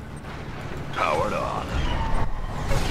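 A laser beam zaps.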